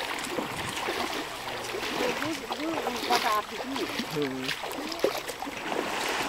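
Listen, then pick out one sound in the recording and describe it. A wooden pole splashes in shallow river water.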